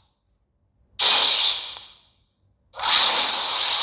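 A magical blast bursts loudly.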